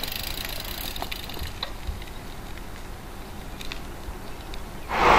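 Small clicks and rattles come from a bicycle as it rides off.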